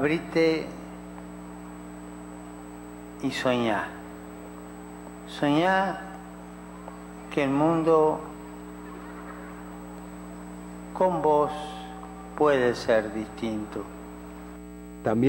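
An elderly man speaks slowly through a microphone in short phrases with long pauses.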